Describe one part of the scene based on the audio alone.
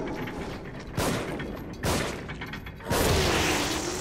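Gunshots blast loudly, one after another.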